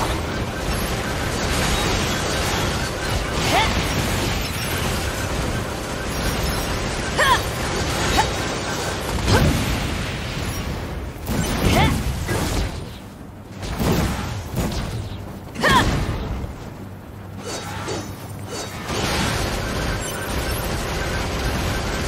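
Metal blades clang and slash against machines.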